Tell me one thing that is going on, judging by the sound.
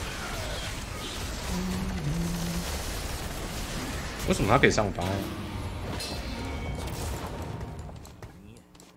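Game battle effects whoosh and clash.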